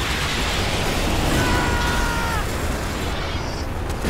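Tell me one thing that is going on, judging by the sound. Flames roar from a flamethrower.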